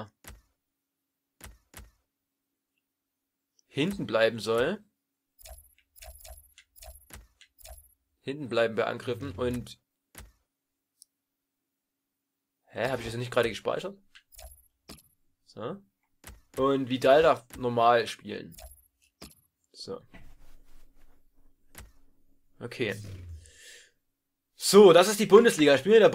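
Short soft clicks sound now and then as menu options change.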